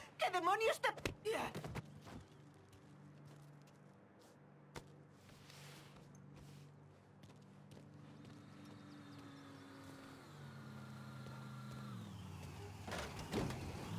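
Footsteps scuff on pavement.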